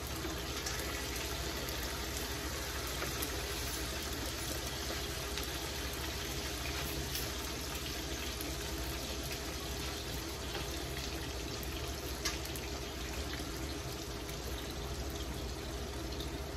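Slices of food sizzle in hot oil in a frying pan.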